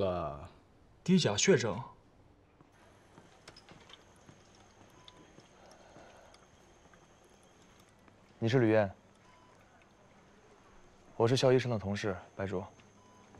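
A young man speaks, close by.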